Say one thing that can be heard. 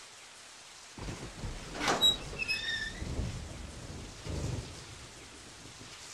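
An iron gate creaks open.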